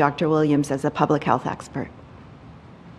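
A middle-aged woman speaks calmly into a microphone.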